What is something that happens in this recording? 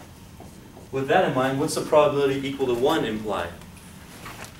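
A man speaks clearly and with emphasis in a room.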